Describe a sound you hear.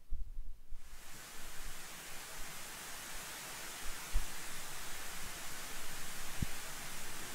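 A missile's rocket motor roars with a steady hiss.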